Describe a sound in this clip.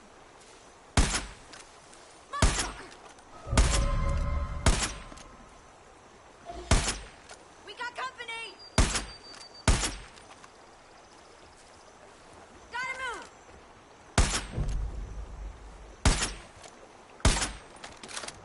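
A rifle fires loud sharp shots now and then.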